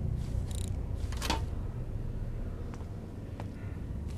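A safe's combination dial clicks as it turns.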